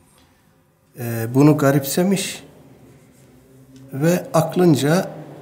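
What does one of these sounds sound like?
A middle-aged man speaks calmly and slowly into a close microphone.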